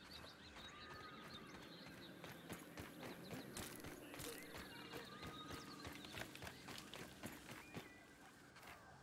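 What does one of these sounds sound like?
Light footsteps patter over dry ground.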